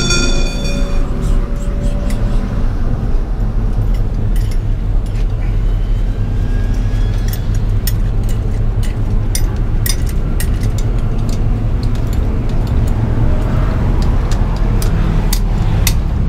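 A turbocharged four-cylinder car engine pulls hard at speed on a track, heard from inside the car.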